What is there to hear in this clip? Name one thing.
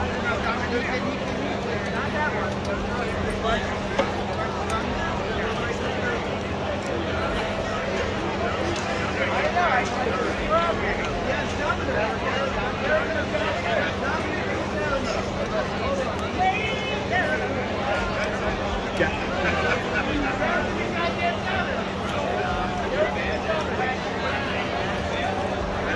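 A crowd of men and women chatter at a distance outdoors.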